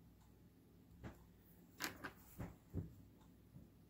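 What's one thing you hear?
Glass beads click against each other and a tabletop.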